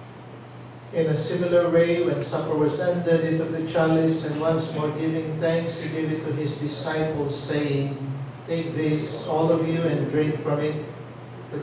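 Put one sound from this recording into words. A man chants in a steady, sung voice through a microphone.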